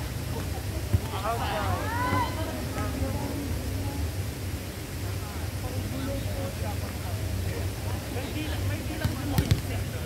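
Young people call out to each other outdoors.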